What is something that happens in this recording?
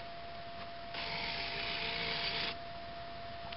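A small electric motor whirs as a model turntable bridge swings round.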